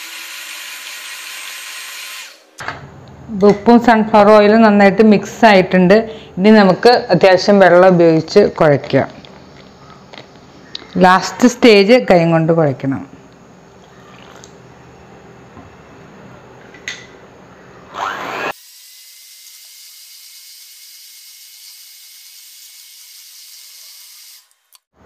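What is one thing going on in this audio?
An electric hand mixer whirs steadily as it beats batter.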